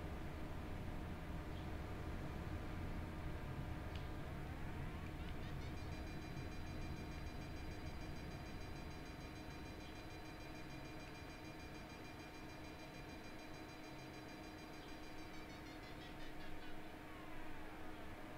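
A variometer sounds a steady electronic tone that shifts pitch up and down.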